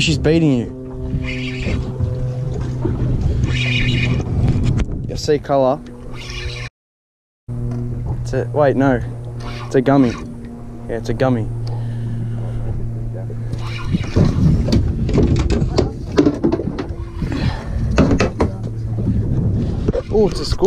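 A spinning fishing reel is wound in.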